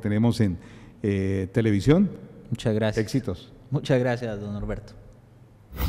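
A middle-aged man speaks with animation into a microphone, close by.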